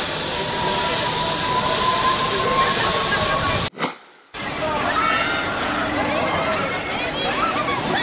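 A fairground ride whirls and whooshes.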